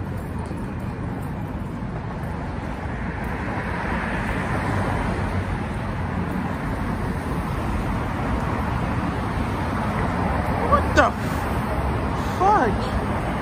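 Car traffic passes along a city street.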